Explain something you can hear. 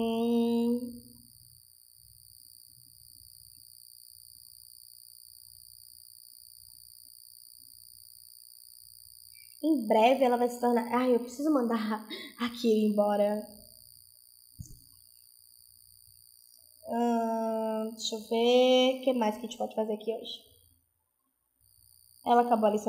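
A young woman speaks with animation into a close headset microphone.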